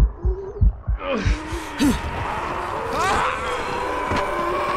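Zombies growl and moan nearby.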